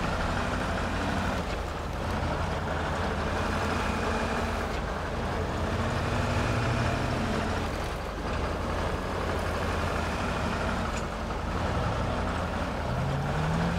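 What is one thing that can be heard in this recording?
A heavy truck engine rumbles steadily as the truck drives over rough ground.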